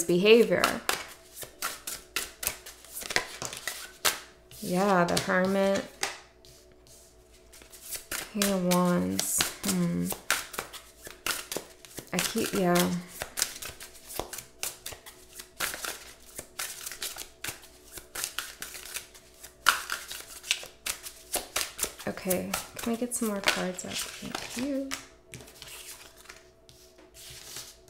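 Cards rustle and tap as a woman shuffles them.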